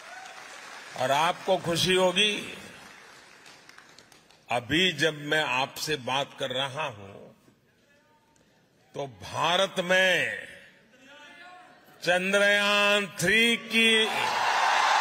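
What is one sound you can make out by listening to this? An elderly man speaks with animation into a microphone in a large hall.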